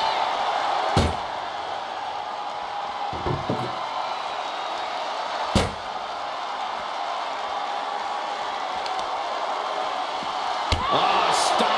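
Bodies slam heavily onto a wrestling mat.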